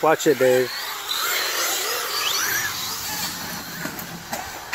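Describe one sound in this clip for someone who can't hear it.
A small electric toy car motor whines as it speeds up and slows.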